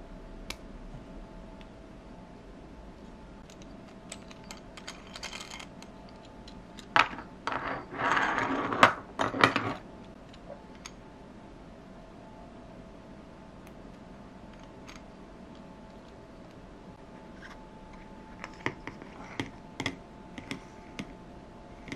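Small plastic toy parts click and clatter as hands fit them together.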